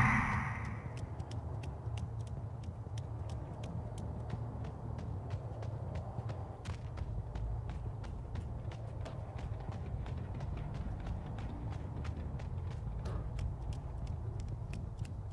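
Quick footsteps run on a hard floor.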